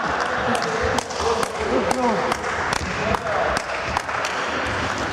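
A ball is kicked and thuds in a large echoing hall.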